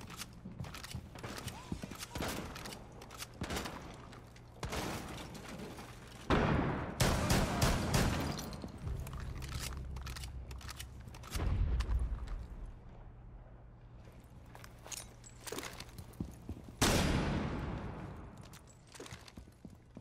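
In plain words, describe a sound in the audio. Footsteps thud on stairs.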